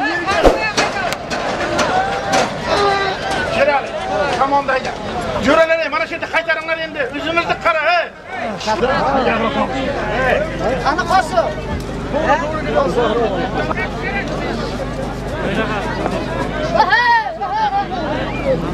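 A crowd of men shouts and calls out loudly outdoors.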